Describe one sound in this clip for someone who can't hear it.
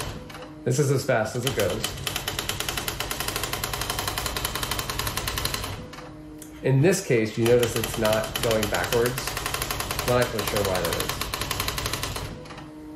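An electronic typewriter prints with a rapid, even clatter.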